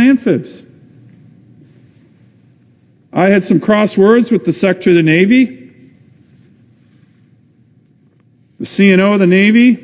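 A middle-aged man speaks formally into a microphone in a large room.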